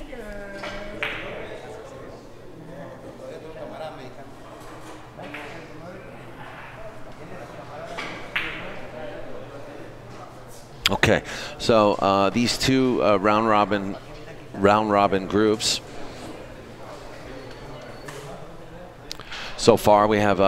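Billiard balls click together as a player takes a shot.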